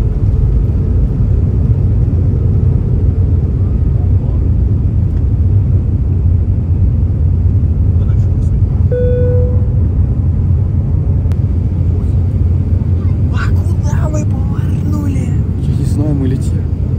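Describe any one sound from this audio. Jet engines roar steadily from inside an airplane cabin.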